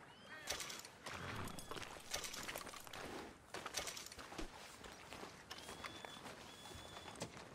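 Footsteps crunch on gravel and sand.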